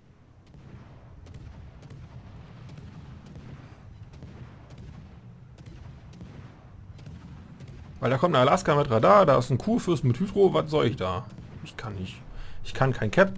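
Heavy naval guns fire in repeated booms.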